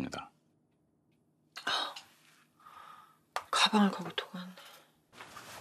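A young woman speaks softly and sadly nearby.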